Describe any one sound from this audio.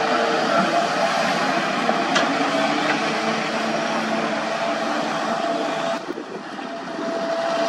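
An excavator engine rumbles steadily outdoors.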